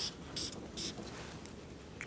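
A hand rubs and wipes across a paper board.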